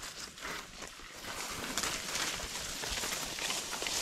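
Dry leaves rustle and crunch underfoot.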